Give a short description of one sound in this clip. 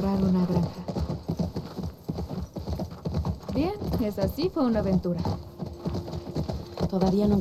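A horse's hooves thud steadily on soft ground at a gallop.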